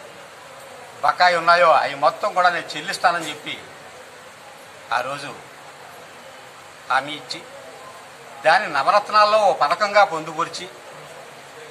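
A middle-aged man speaks forcefully into a microphone, close by, in short bursts with pauses.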